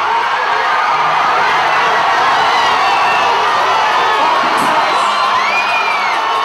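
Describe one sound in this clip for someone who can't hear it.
A large crowd cheers and screams loudly outdoors.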